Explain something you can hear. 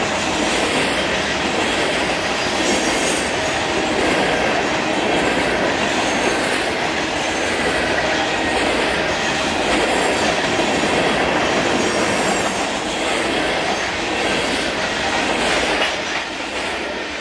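A fast freight train of hopper cars rumbles past close by.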